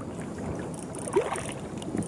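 A hooked fish splashes at the water's surface.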